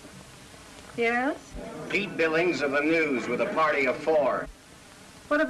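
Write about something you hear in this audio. A woman speaks excitedly into a telephone.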